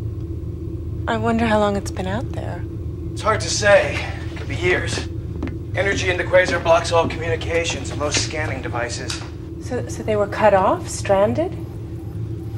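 A man speaks quietly nearby.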